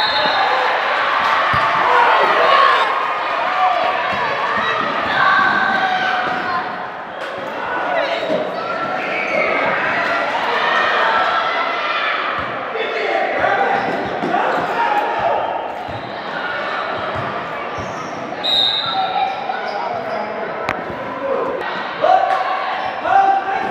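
Crowd voices shout and cheer throughout, echoing in a large hall.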